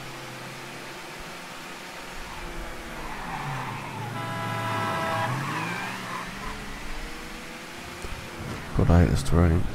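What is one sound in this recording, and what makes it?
A car engine hums steadily and rises and falls in pitch as the car drives.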